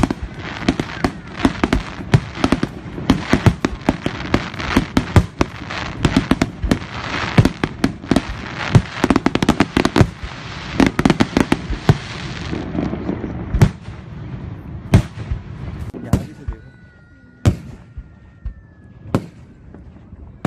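Fireworks burst with rapid loud bangs and crackles.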